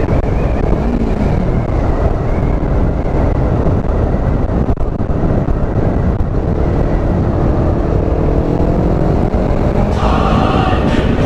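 A motorcycle engine hums steadily and rises in pitch as it speeds up.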